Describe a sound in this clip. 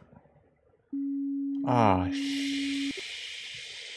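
A warning tone beeps briefly.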